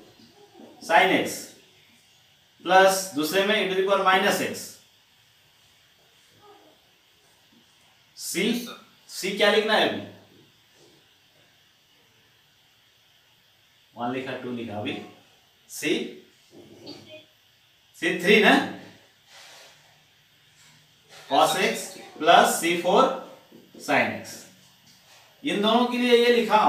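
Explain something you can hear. A man speaks calmly and steadily, close to a microphone, in short bursts with pauses.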